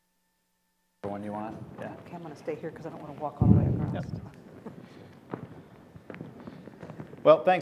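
A man speaks into a microphone in a large room.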